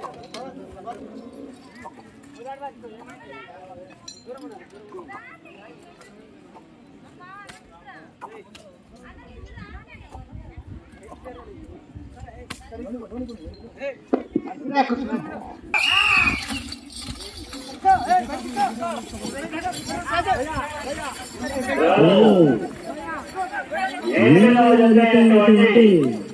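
A crowd of men talk and call out outdoors.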